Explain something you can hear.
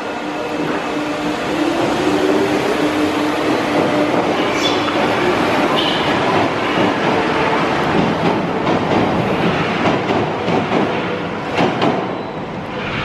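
A metro train pulls away and rumbles off into a tunnel.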